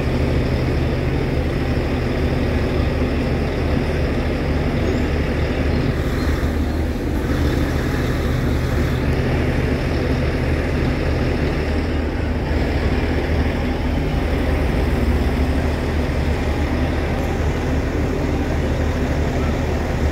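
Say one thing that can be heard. A crowd of people murmurs and chatters in the distance.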